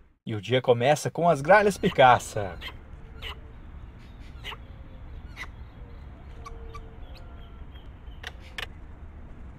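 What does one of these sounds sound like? Plush-crested jays peck at dry corn cobs on the ground.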